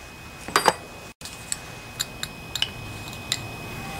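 Pliers click against a metal part.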